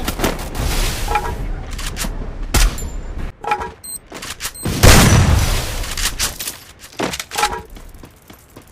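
Footsteps run across hard ground in a video game.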